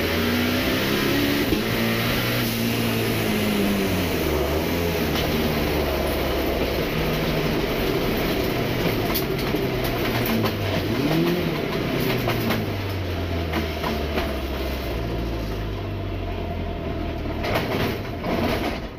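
A race car engine roars loudly from inside the cabin, revving up and down through the gears.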